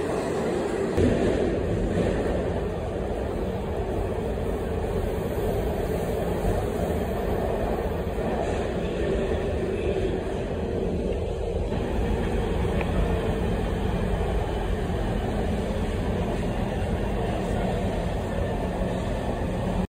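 A subway train rumbles and rattles steadily along the tracks.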